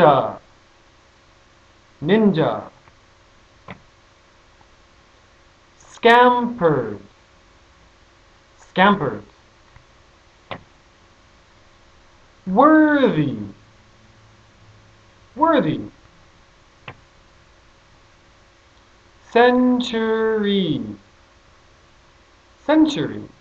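A man speaks words slowly and clearly into a close microphone, with pauses between them.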